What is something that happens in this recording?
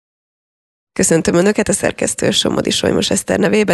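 A woman speaks into a microphone with animation, close by.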